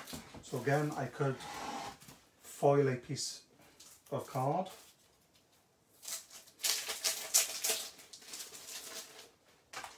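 A stiff plastic sheet crinkles and rustles.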